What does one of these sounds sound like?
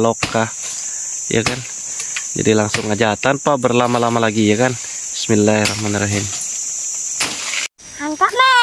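A machete chops into a tree trunk with sharp knocks.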